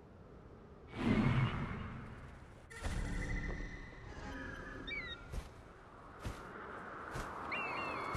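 Wind rushes past in strong gusts.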